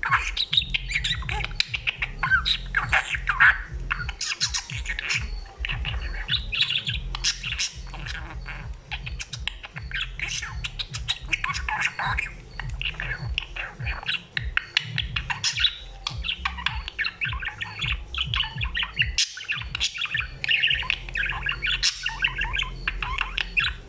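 A budgerigar chatters and warbles close by.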